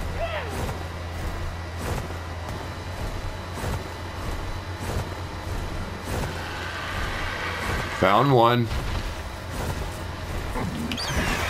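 Large wings flap steadily.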